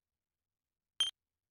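A short electronic blip sounds.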